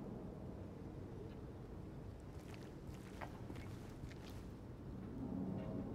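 Footsteps tread on wet pavement.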